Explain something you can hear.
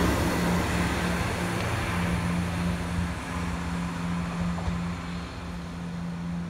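Train wheels rattle over the rails and slowly fade.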